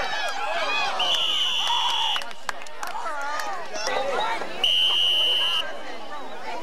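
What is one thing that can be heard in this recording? A referee's whistle blows in short, shrill blasts.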